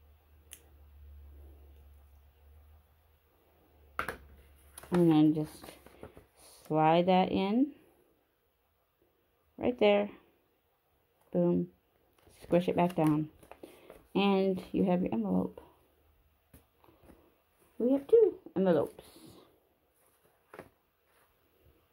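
Paper rustles softly as it is handled and folded.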